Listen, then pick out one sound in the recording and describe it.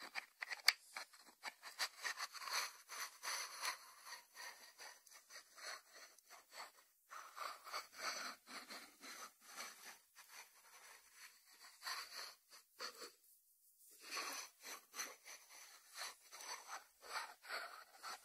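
Fingertips tap and scratch lightly on a ceramic lid.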